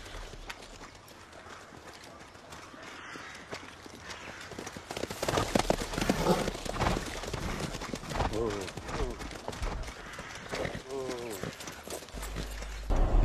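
Horses gallop over soft ground, hooves thudding.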